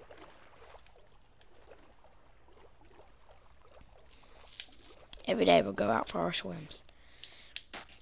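Water gurgles and bubbles as a swimmer moves underwater.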